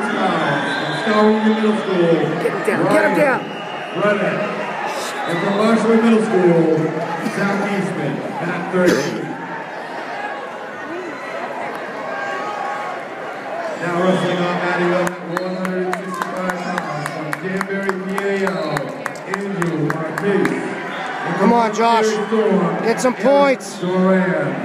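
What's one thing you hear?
A crowd of spectators shouts and cheers loudly in a large echoing arena.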